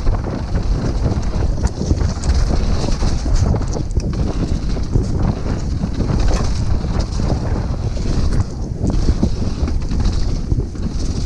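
A downhill mountain bike's chain and suspension rattle and clatter over bumps.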